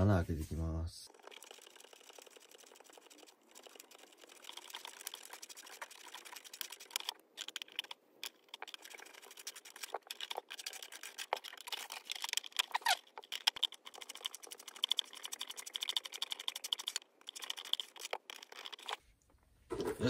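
Thin plastic parts click and rustle as hands fit them onto a hollow plastic shell.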